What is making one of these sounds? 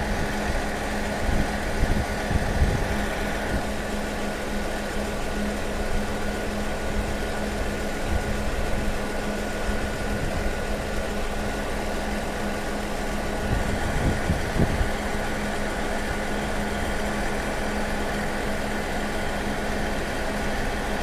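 A diesel engine hums steadily nearby.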